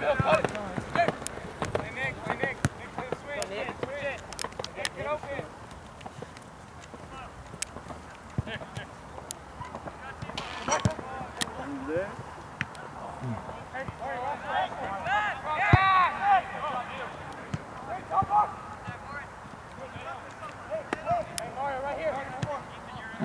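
A soccer ball is kicked with sharp thuds.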